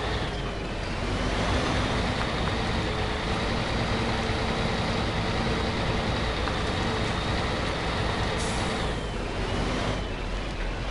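A truck engine revs up loudly and then settles.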